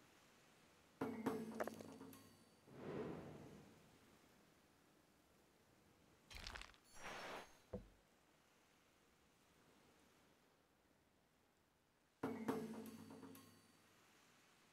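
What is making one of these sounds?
A short game chime rings out a few times.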